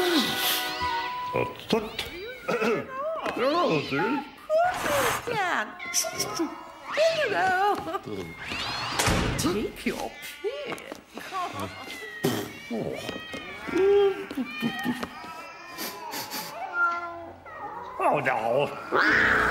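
A man mumbles and grunts in a nasal voice.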